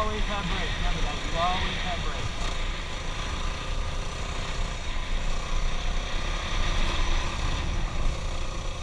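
A dirt bike engine revs and drones up close.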